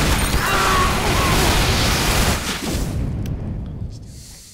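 A flamethrower roars in loud bursts.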